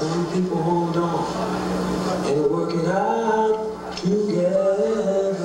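A woman sings a slow, held melody.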